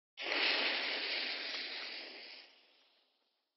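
A bomb fuse fizzes and sizzles.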